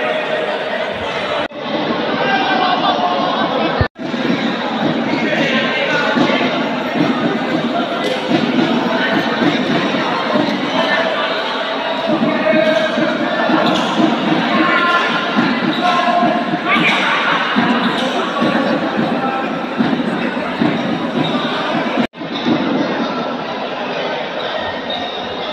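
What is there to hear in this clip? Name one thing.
A crowd of people chatters loudly in a large echoing hall.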